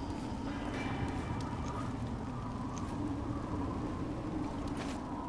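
Footsteps and scrapes sound on stone as a figure climbs.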